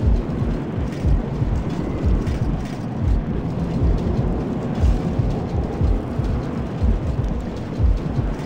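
A heavy stone lift rumbles steadily as it moves.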